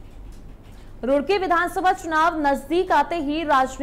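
A young woman reads out the news calmly into a microphone.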